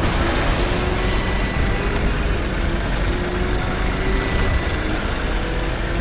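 A loud rushing roar of speed and wind sweeps past.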